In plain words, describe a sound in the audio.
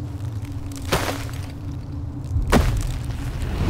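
A giant stone hand slams heavily onto a wall.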